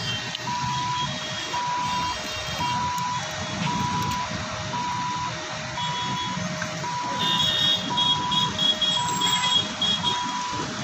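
Steam hisses from a burnt-out car.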